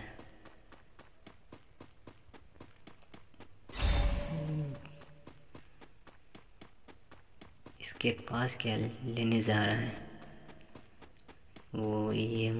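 Quick footsteps patter on the ground at a run.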